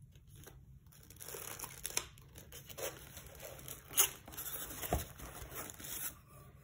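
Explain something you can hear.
Plastic wrap crinkles and rustles as hands handle it.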